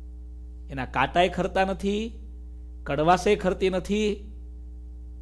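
A man speaks calmly and closely into a microphone, in two short phrases.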